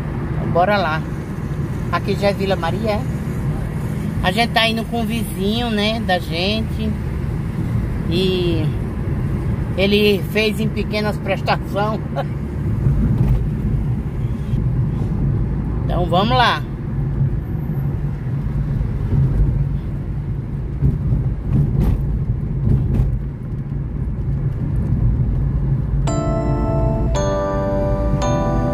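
A car rumbles low and steadily along a road, heard from inside.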